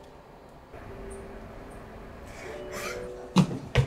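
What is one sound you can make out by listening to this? A young woman sobs softly nearby.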